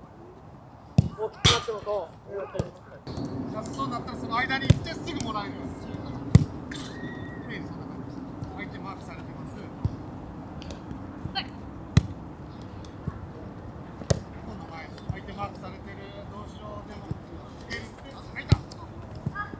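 Footballs thud as children kick them.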